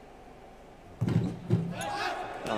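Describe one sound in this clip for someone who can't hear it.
A basketball thuds against the hoop's rim and backboard.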